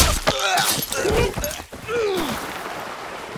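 A dog snarls and yelps close by.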